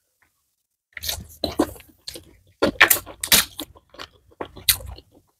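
Crisp lettuce leaves crunch between a woman's teeth.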